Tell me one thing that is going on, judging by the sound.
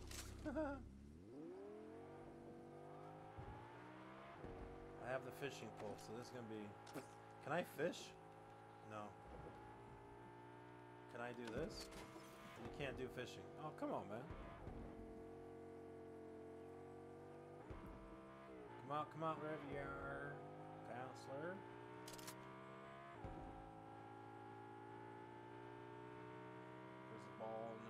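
A car engine starts and revs up, then hums steadily as it drives.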